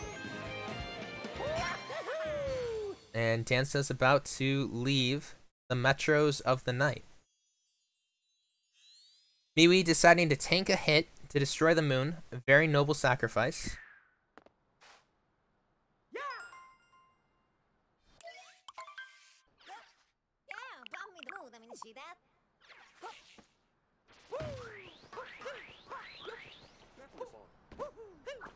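Video game sound effects chime and jingle.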